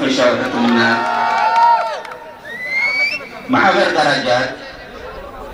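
A crowd of people sings and shouts outdoors nearby.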